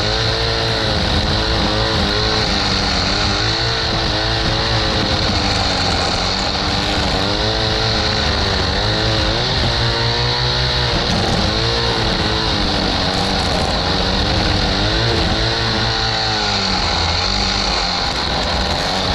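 A string trimmer engine buzzes loudly up close, its pitch rising and falling.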